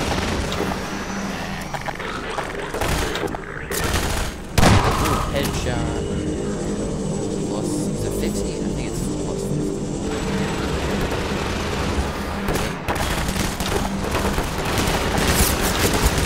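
A shotgun fires with loud, sharp blasts.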